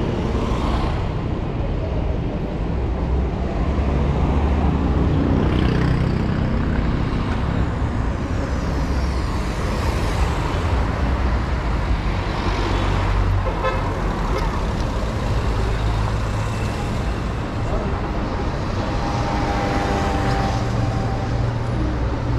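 City traffic hums and rumbles steadily outdoors.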